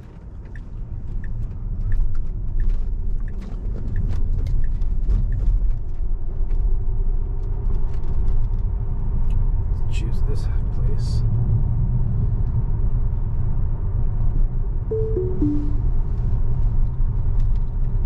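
Tyres of an electric car rumble on asphalt, heard from inside, picking up speed.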